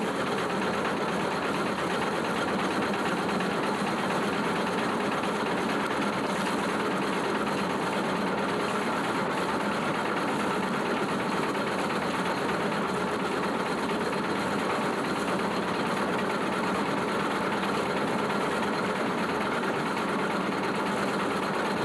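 A flour sifting drum turns in a wooden water mill, rumbling and rattling.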